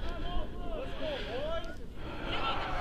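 Distant voices call out across an open field.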